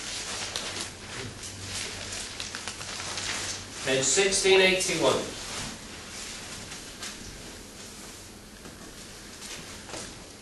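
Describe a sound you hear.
A middle-aged man speaks into a lapel microphone, preaching with emphasis in an echoing hall.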